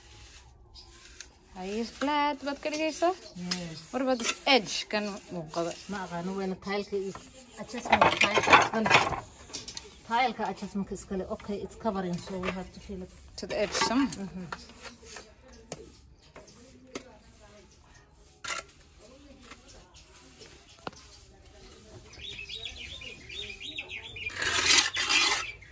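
A trowel scrapes and spreads wet cement on a wall.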